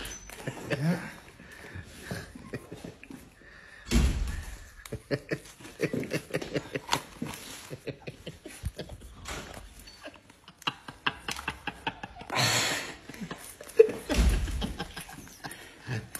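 A rubbery mask peels and crinkles off a face.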